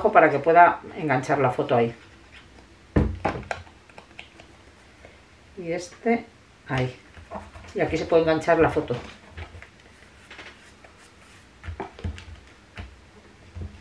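Paper rustles and taps as hands press it down.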